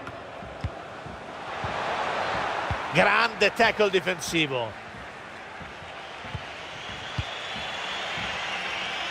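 A stadium crowd roars and murmurs.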